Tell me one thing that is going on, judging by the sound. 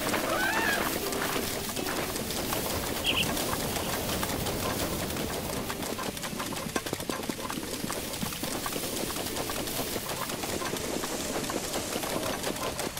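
Footsteps run quickly through wet grass.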